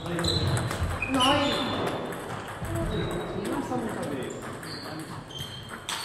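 Sports shoes squeak on the hall floor.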